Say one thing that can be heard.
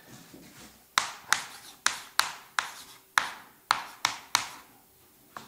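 Chalk taps and clicks sharply on a blackboard.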